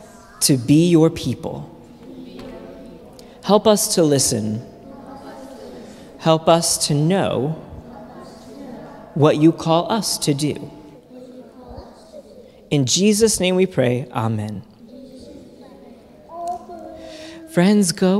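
A man speaks calmly through a microphone in a large echoing hall, in short bursts with pauses.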